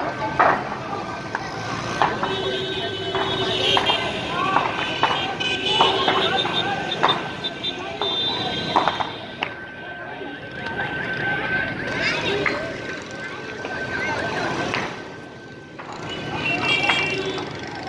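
Traffic hums along a busy street below.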